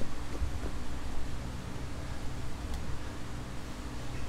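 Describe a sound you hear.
Footsteps crunch on concrete.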